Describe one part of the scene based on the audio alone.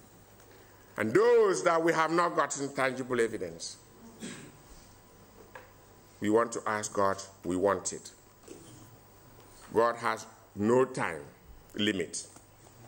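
A man speaks calmly into a microphone, heard over a loudspeaker in an echoing room.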